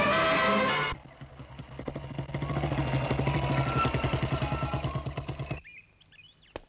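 A motorcycle engine thumps loudly as the motorcycle rides up and stops, then the engine cuts off.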